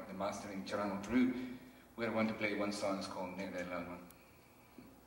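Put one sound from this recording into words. An older man speaks into a microphone on a stage.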